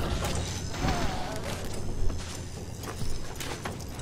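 A gunshot rings out with a sharp bang.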